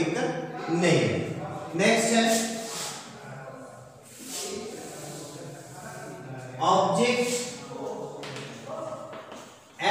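A man talks calmly, lecturing close by in a slightly echoing room.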